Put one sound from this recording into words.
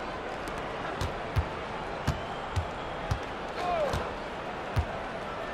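A basketball bounces on a hardwood court in sharp thumps.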